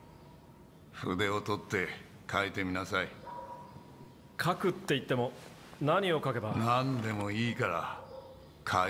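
An elderly man speaks calmly and encouragingly, close by.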